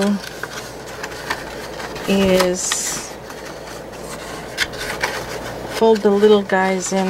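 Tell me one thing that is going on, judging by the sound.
Stiff paper rustles and crinkles between fingers.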